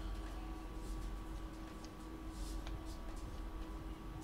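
Playing cards slide and tap on a table.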